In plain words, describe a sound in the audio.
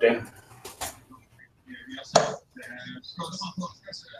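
Darts thud into a dartboard.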